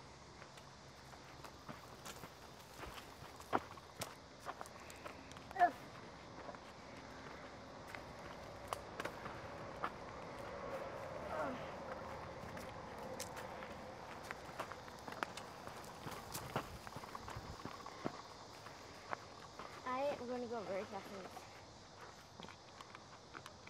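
Bicycle tyres crunch over a dirt trail with twigs and leaves.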